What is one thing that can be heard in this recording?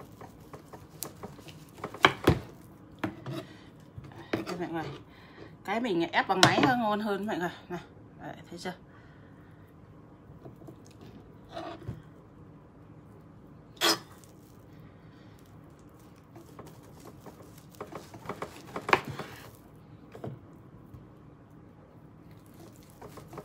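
A knife cuts through meat and knocks on a cutting board.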